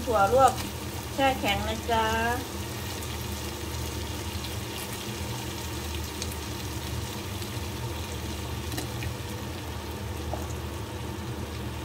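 Green beans tumble into a pan.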